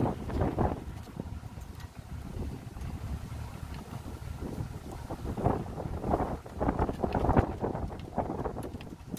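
Wind rumbles and buffets loudly as a boat moves along.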